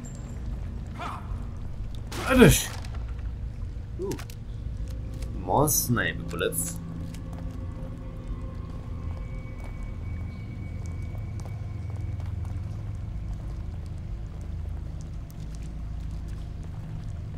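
Footsteps crunch over loose rocks and gravel.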